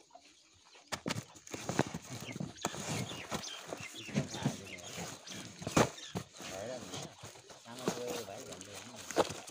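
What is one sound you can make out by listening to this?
Cardboard boxes scrape and thump as they are moved.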